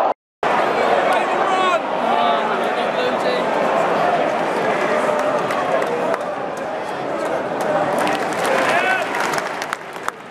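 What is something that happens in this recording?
Spectators nearby shout and cheer.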